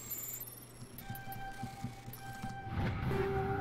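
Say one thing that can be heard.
Electronic beeps chirp in quick succession.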